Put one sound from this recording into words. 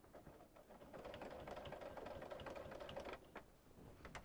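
A sewing machine hums as it stitches.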